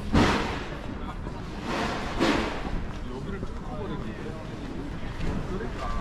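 People's footsteps tap on stone paving nearby.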